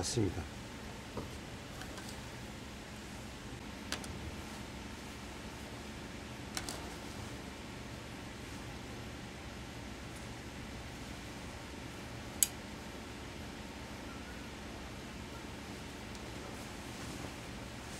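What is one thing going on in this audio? Heavy cloth rustles as hands fold and handle it.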